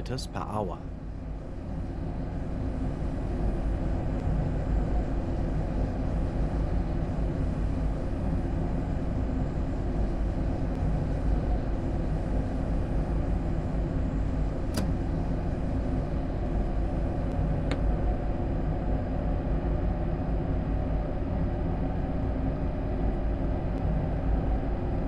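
Train wheels clatter on the rails at speed.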